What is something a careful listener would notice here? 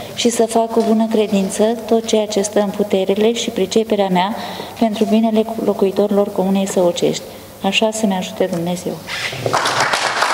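A middle-aged woman speaks steadily and formally into a microphone.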